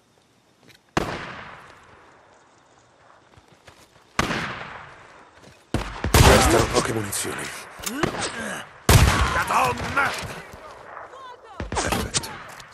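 A scoped rifle fires sharp shots that echo outdoors.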